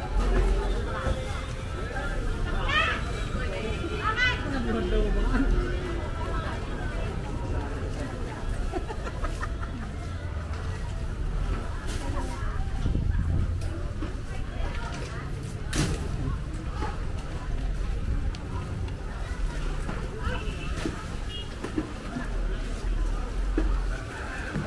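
Voices of a crowd murmur and chatter outdoors.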